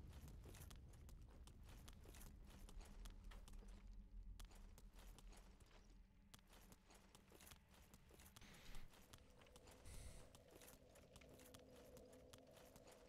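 Footsteps clatter on stone.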